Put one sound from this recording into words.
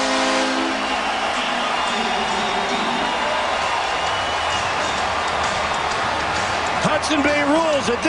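A large crowd cheers and roars in a big arena.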